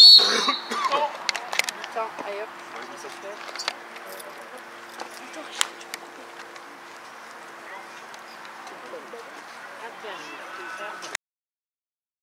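Young players call out to each other across an open field, heard from a distance.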